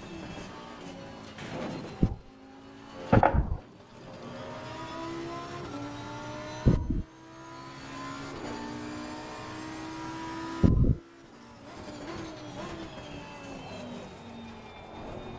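A race car engine revs hard and shifts through gears.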